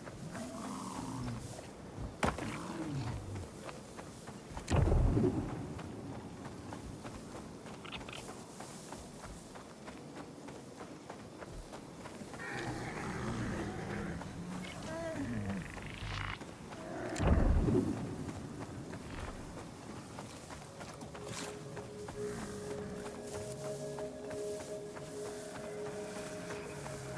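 Footsteps run quickly through tall dry grass.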